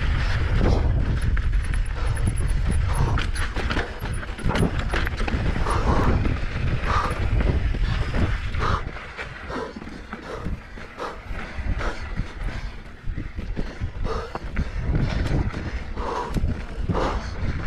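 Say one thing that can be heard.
Wind buffets loudly.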